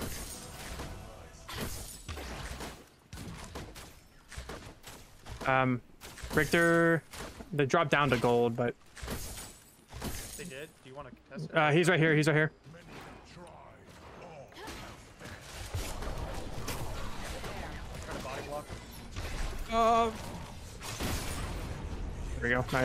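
Video game weapons fire and clash in quick bursts.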